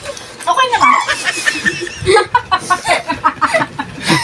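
An older woman laughs up close.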